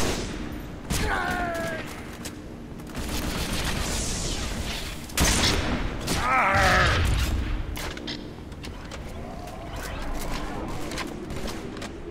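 Guns fire in quick bursts.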